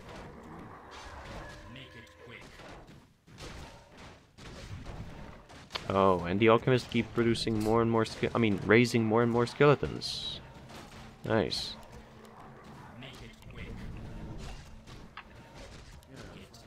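Weapons clash and spells crackle in a battle.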